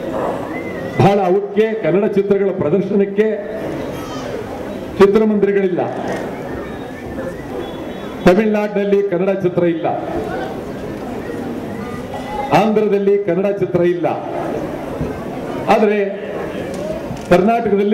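An elderly man speaks forcefully into a microphone over a loudspeaker, in short bursts.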